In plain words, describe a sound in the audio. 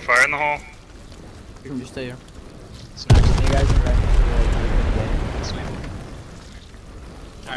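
Flames roar and crackle nearby.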